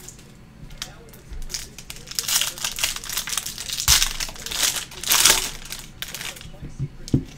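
A foil wrapper crinkles and tears as hands open it.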